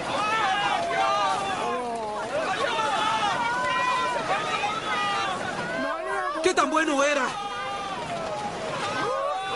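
Floodwater rushes and churns loudly.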